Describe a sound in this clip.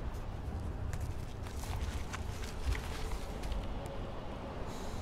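Paper rustles and crinkles as a wrapper is unfolded close by.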